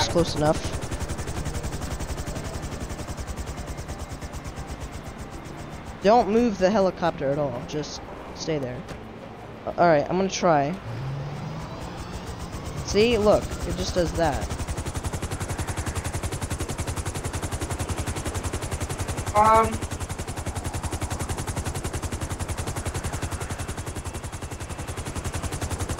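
A helicopter's rotor whirs and thuds steadily nearby.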